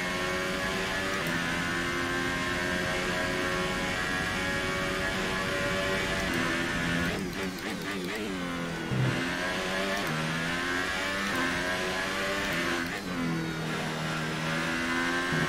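A racing car engine roars at high revs, dropping in pitch under braking and rising again as it speeds up.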